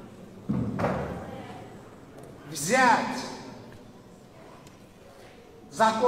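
A middle-aged man speaks calmly into a microphone in a reverberant hall.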